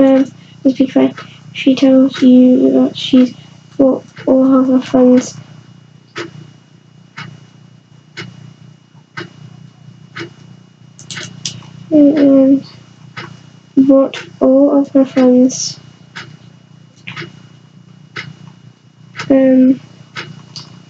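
A young girl speaks close by in short bursts.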